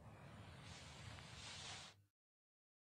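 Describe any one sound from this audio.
Knitted wool rustles softly as a man pulls on a hat.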